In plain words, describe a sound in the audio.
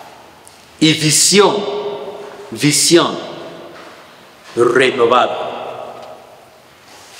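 A man speaks with animation through a microphone, echoing in a reverberant room.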